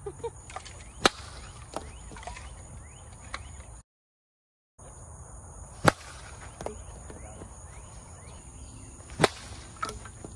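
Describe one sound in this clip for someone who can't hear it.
A plastic bat sharply smacks a hollow plastic ball.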